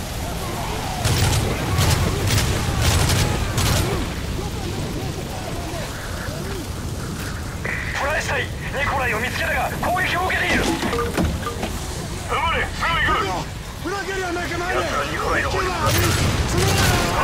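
Gunshots crack in rapid bursts close by.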